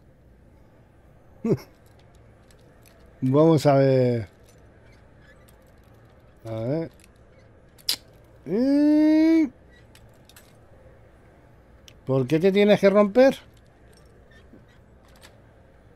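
A metal pick scrapes and clicks inside a lock.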